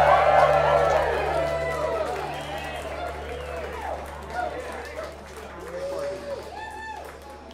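A string band plays a lively tune with a fiddle, then stops.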